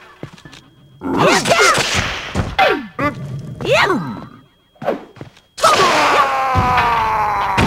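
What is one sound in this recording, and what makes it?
A sword clashes against an enemy in quick strikes.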